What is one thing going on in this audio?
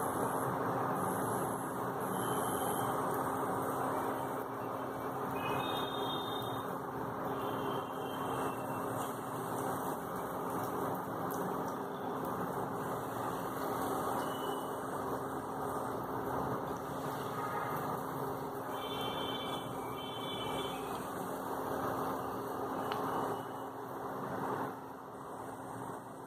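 Oil sizzles and crackles steadily in a frying pan.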